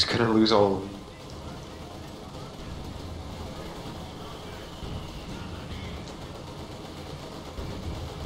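A tank engine rumbles.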